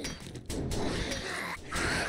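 An axe thuds against a wooden door.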